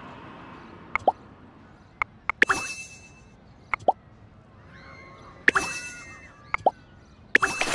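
Game menus click and chime with each tap.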